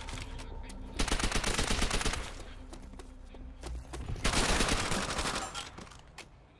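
Gunfire rattles in rapid, loud bursts.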